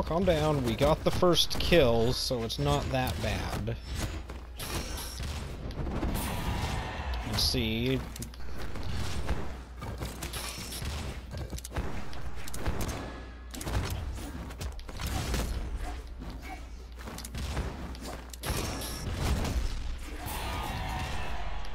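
Cartoonish blows and slashes crack and whoosh in quick bursts.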